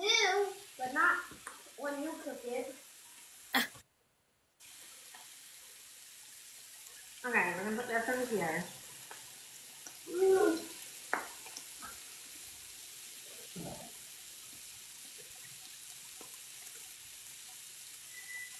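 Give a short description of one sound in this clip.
A spatula scrapes on a hot griddle.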